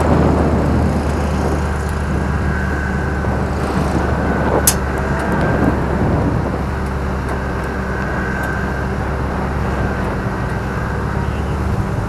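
Tyres roll over rough pavement.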